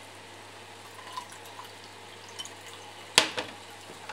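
Egg batter pours into a pan.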